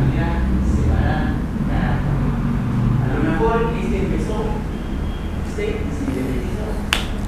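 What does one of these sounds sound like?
A man lectures calmly, heard through a microphone.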